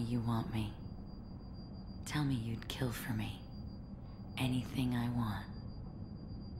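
A young woman speaks softly and seductively, close by.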